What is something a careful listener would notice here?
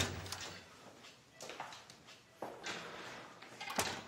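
A door shuts.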